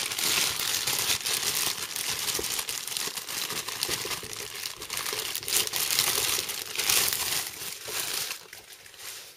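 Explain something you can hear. A plastic bag crinkles and rustles as it is handled.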